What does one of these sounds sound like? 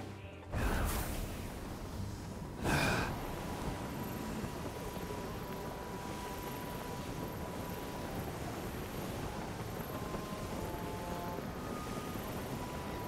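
Wind rushes steadily past a figure gliding through the air.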